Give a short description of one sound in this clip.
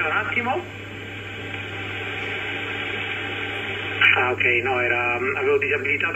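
A voice talks through a radio loudspeaker, thin and crackly.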